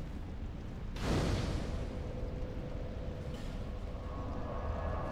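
A fire bursts alight with a loud whoosh and keeps crackling softly.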